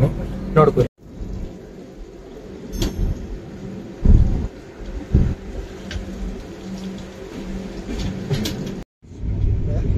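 A train rumbles steadily along the track, heard from outside the carriage.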